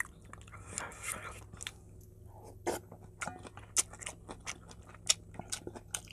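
A metal spoon clinks against a metal bowl.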